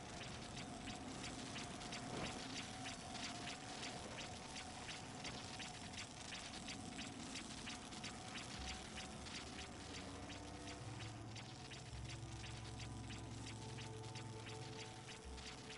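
An energy beam crackles and buzzes steadily with electricity.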